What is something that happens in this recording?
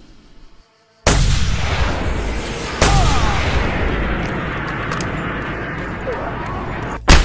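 Loud rumbling battle noise roars steadily.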